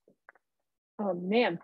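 A young woman speaks briefly, close to the microphone.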